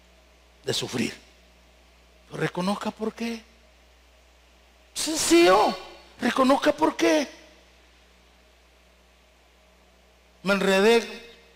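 A man preaches forcefully into a microphone, heard over loudspeakers in a large hall.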